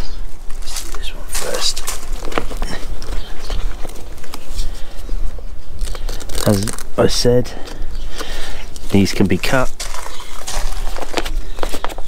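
Fabric straps rustle and scrape as a bag is fastened to a bicycle frame.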